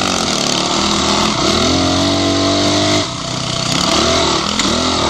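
A dirt bike engine revs loudly close by, rising and falling in pitch.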